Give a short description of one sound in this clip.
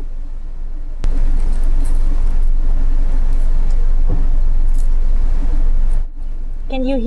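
Crusty bread crackles and crunches as it is squeezed close to the microphone.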